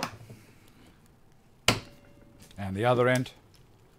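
A metal clamp clicks as it is tightened.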